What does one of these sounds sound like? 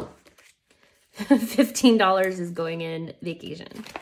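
A zipper rasps open.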